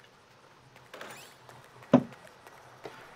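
A door swings open with a click.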